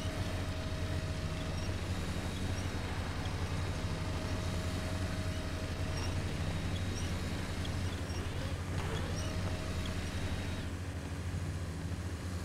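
Tyres crunch and scrape over rocks.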